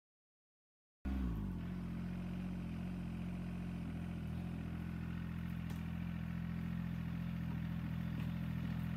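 A diesel compact tractor engine runs.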